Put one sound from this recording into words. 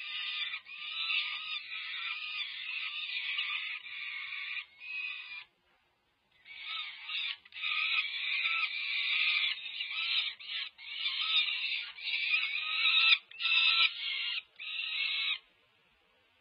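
Young falcons screech loudly and repeatedly, close by.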